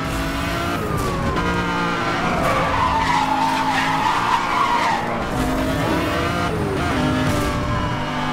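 Exhaust flames pop and crackle from a car's tailpipes.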